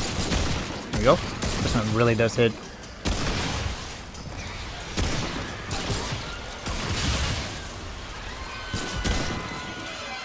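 Gunshots ring out one at a time.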